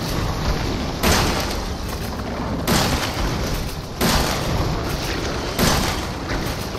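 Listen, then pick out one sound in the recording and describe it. A shotgun fires loud blasts, several times.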